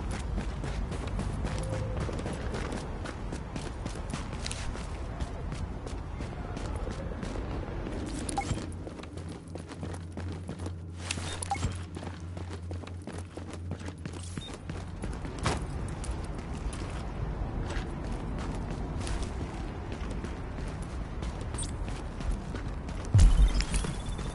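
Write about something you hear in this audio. Footsteps tap steadily on a hard floor and crunch on snow.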